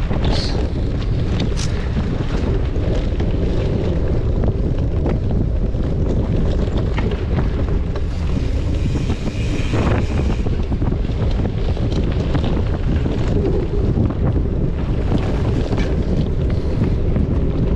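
Wind rumbles loudly past close by.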